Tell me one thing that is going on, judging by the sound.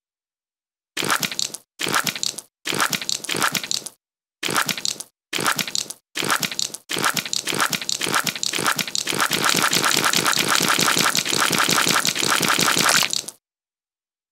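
A large insect skitters in bursts of scratchy chittering.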